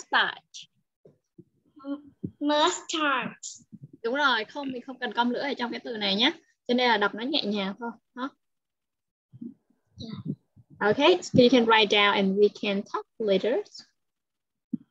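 A young woman speaks clearly through an online call, like a teacher explaining.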